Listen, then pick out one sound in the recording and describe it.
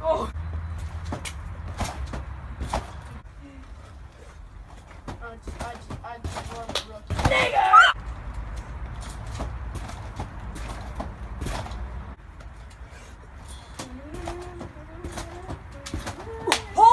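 Trampoline springs creak with each bounce.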